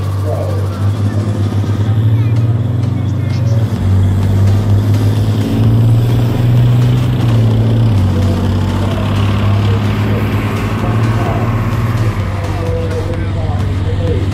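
A tracked armoured vehicle drives past with a loud engine roar.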